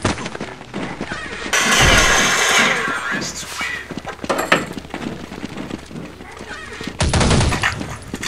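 Video game sounds play from a small laptop speaker.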